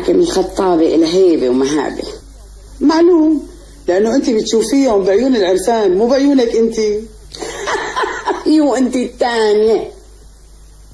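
A middle-aged woman talks with animation nearby.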